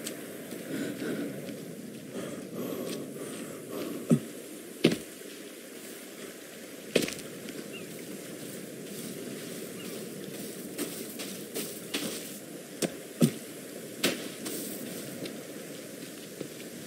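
Footsteps crunch over sand and grass.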